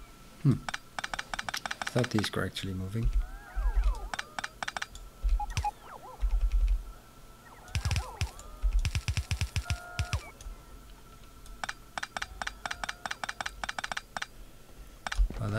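A game's item pickup sounds tick rapidly in quick bursts.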